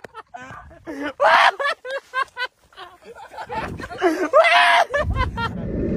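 A young man laughs and talks excitedly close by.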